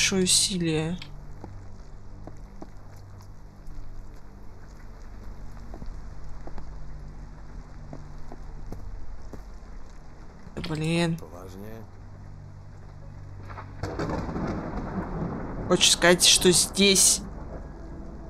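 A young person talks into a nearby microphone in short bursts.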